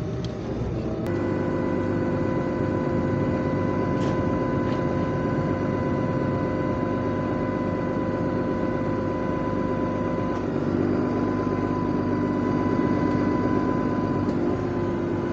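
A machine behind the tractor whirs loudly and steadily.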